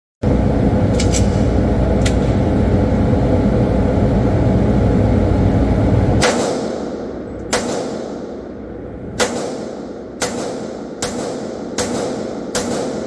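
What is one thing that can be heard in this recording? Gunshots crack loudly and echo in an indoor range.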